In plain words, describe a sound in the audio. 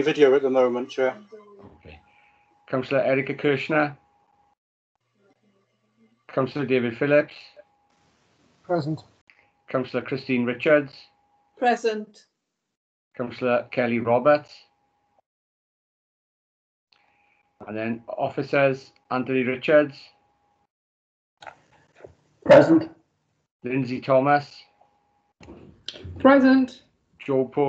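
A man speaks calmly through an online call, pausing now and then.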